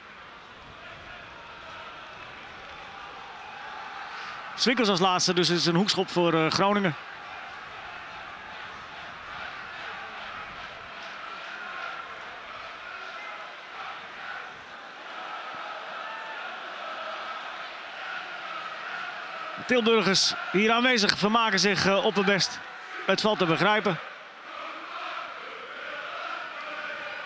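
A stadium crowd murmurs and cheers in the distance.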